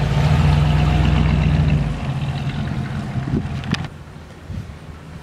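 An old car's engine rumbles loudly close by, then fades as the car drives away.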